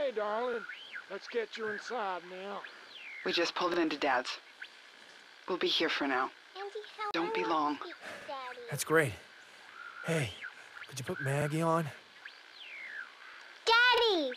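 A man speaks warmly over a walkie-talkie.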